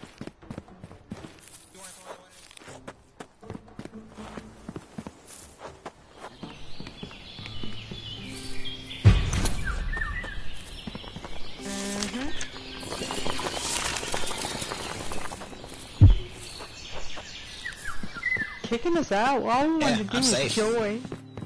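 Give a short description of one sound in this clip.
Quick footsteps patter on stone and grass.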